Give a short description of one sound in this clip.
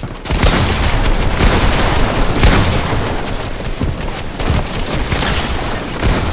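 Wooden planks crack and splinter as walls break apart.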